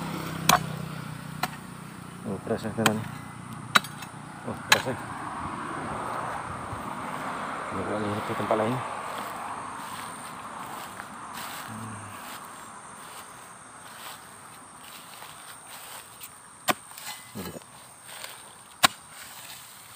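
An axe blade strikes the ground with sharp thuds.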